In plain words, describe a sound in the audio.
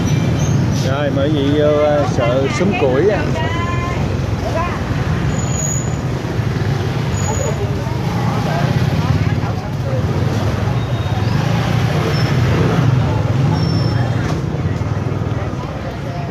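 People chatter nearby.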